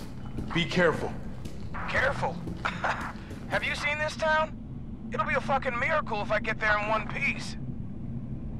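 A man speaks sarcastically, close by.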